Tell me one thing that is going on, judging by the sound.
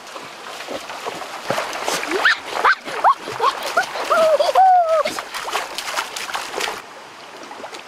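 A boy speaks loudly and with animation close by.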